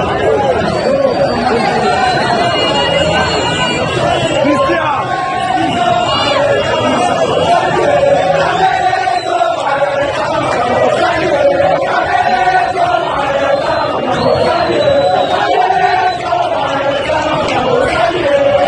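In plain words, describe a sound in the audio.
A large crowd sings and chants loudly outdoors, close by.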